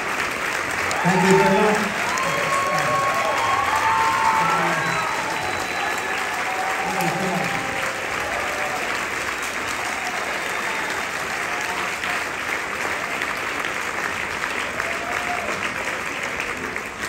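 Band instruments play scattered, loose notes in a large echoing hall.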